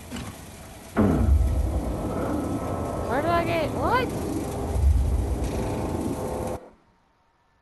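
A deep rumbling blast shakes the air.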